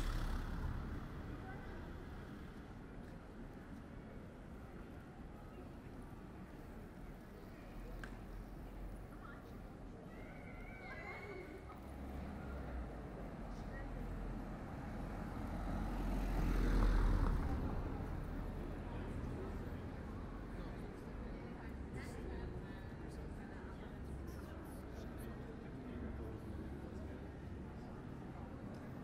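Outdoors, a quiet murmur of distant passers-by fills the air.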